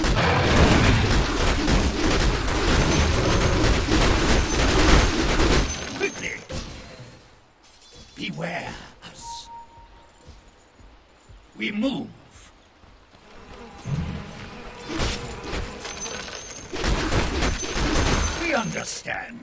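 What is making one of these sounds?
Magic blasts crackle and boom in a fierce fight.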